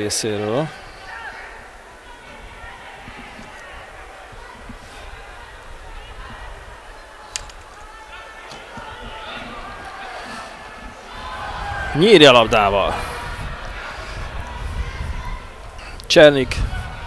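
A large crowd murmurs and chants in an open stadium.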